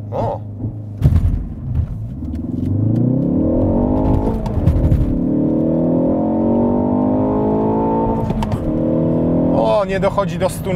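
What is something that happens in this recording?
A car engine revs up loudly and rises in pitch.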